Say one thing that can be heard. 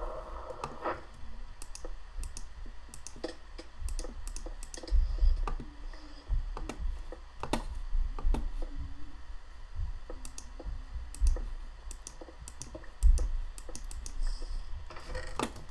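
Stone blocks are set down with short, sharp clicks.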